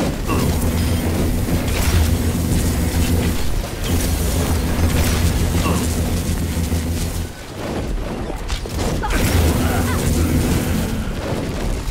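Rapid gunfire crackles.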